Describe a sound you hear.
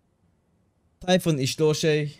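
A man speaks animatedly close to a microphone.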